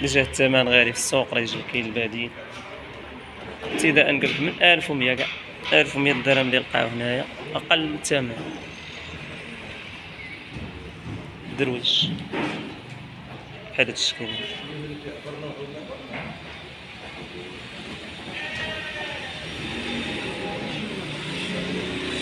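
A flock of sheep bleats.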